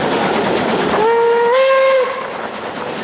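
A steam whistle blows loudly.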